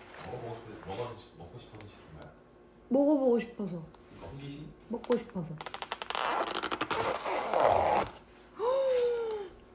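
A plastic lid creaks and crackles as it is pried off a container.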